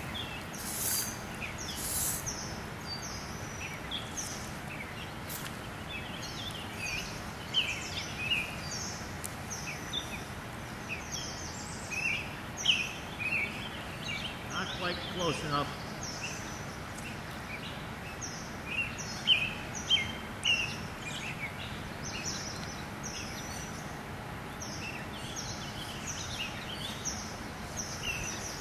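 A river flows gently around a wading fisherman's legs.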